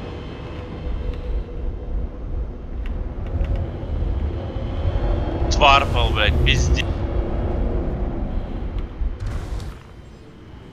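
A spaceship engine rumbles louder as the ship lifts off.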